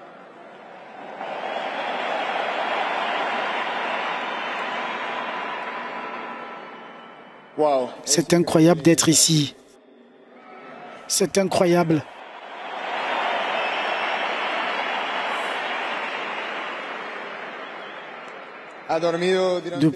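A crowd cheers and applauds loudly in a large echoing hall.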